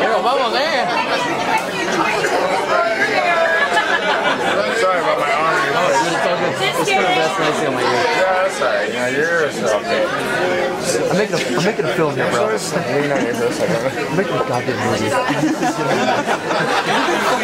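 A crowd of men and women chatter all around in a busy, echoing room.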